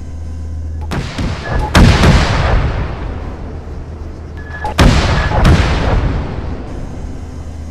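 Rockets launch with loud rushing whooshes.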